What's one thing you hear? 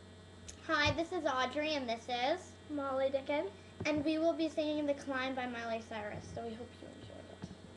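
A teenage girl sings close to a microphone.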